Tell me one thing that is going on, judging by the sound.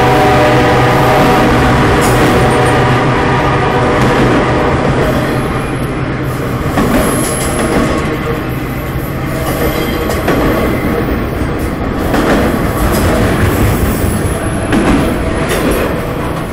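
Wheels squeal on the rails.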